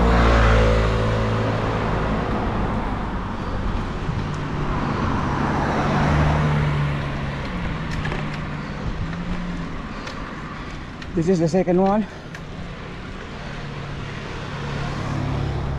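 A motorbike engine hums steadily while riding.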